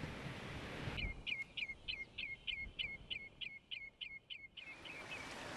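A bird calls in a rapid series of sharp, piping notes.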